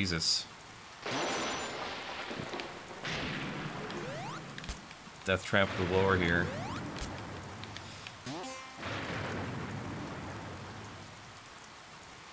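A rolling whoosh sound effect plays in bursts.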